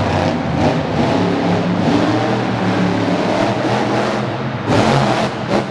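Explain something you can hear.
A monster truck engine roars loudly, revving up and down.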